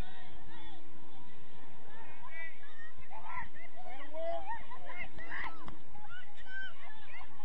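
Young women shout and call out to each other in the distance, outdoors.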